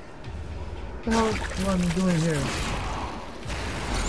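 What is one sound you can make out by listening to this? A monster roars and growls loudly.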